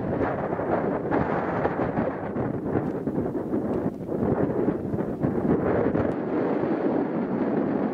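A volcano rumbles and roars steadily, with crackling bursts.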